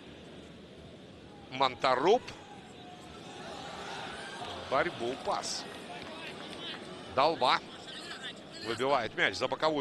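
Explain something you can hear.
A stadium crowd murmurs and cheers in a large open space.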